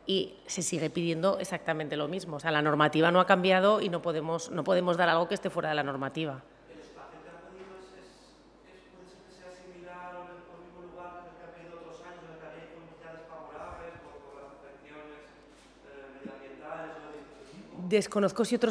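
A middle-aged woman speaks with animation into a microphone.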